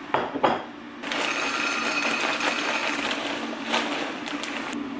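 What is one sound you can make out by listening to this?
Frozen peas pour and rattle into a glass dish.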